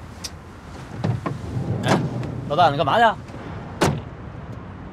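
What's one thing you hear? A young man speaks with animation and surprise, close by.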